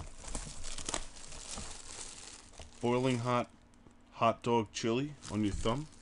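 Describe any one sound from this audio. Plastic wrapping crinkles as it is torn off.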